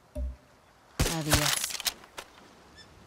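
A rifle fires a shot.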